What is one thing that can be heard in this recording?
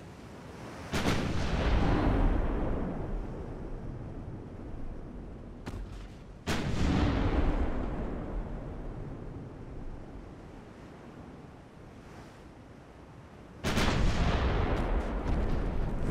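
Heavy naval guns fire with loud booming blasts that rumble away.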